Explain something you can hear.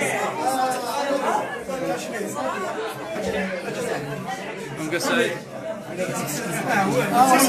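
A crowd of men and women talk and call out excitedly close by.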